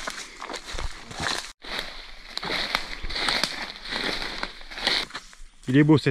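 Footsteps crunch and rustle through dry leaves and grass outdoors.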